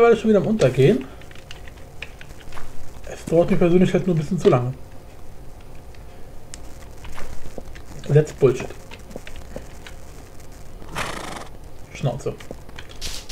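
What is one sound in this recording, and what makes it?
A young man talks casually and close to a microphone, in short bursts.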